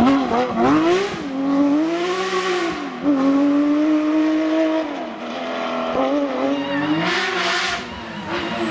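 A rally car engine roars loudly, revving up and down through the gears as the car speeds away.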